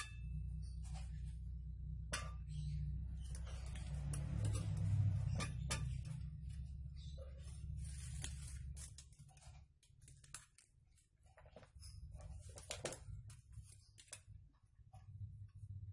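A metal rod clinks and scrapes as it is handled.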